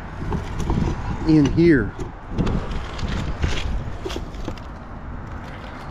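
A hand pries up a loose metal cover with a scrape.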